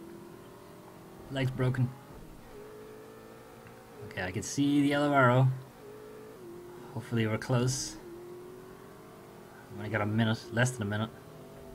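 A car engine hums steadily and rises and falls in pitch.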